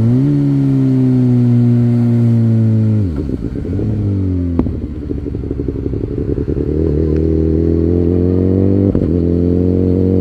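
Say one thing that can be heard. A motorcycle engine roars steadily, drops as the rider shifts gears, then rises again.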